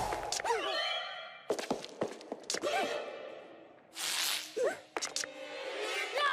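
A cartoon character whimpers and babbles in fright.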